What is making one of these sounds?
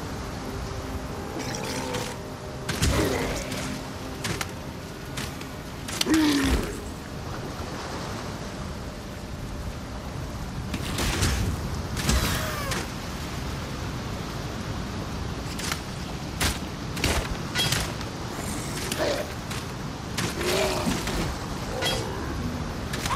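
Sword blows and impacts strike again and again in a fight.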